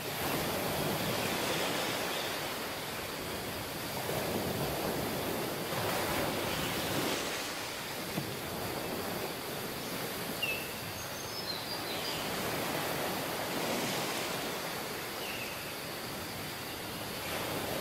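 Wind blows across the open beach.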